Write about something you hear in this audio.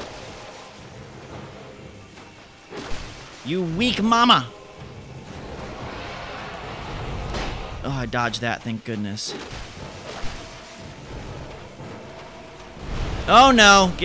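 A sword slashes and strikes a large creature.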